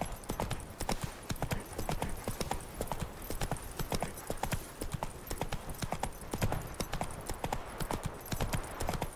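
Horse hooves clop quickly and steadily on a dirt path.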